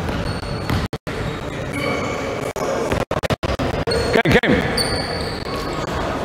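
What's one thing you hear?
Basketballs bounce on a wooden floor in an echoing gym.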